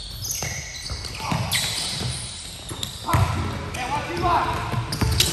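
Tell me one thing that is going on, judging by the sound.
Players' footsteps thud and patter across the court.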